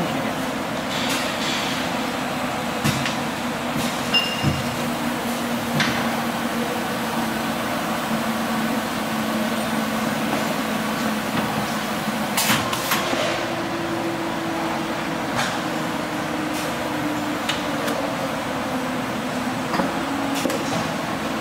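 Metal parts click and clack now and then as the machine is worked.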